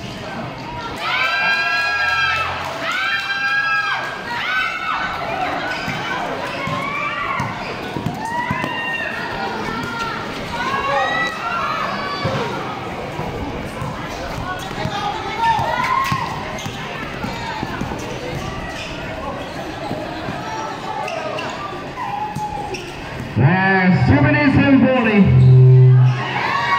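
A large crowd of spectators cheers and shouts outdoors.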